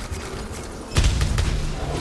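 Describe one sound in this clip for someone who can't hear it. A glowing flare launches with a sudden loud burst.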